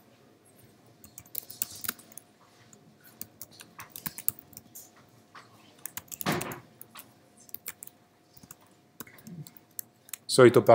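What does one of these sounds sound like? Keys click softly on a keyboard as someone types.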